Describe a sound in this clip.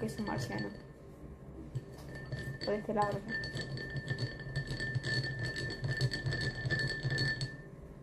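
A spoon clinks against a glass as it stirs a drink.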